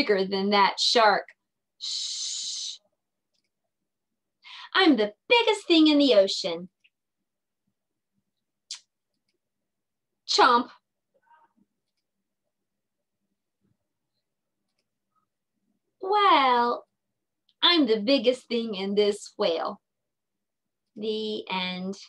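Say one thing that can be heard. A young woman reads aloud with expression over an online call.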